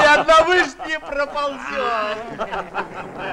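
A group of men sing together loudly, close by.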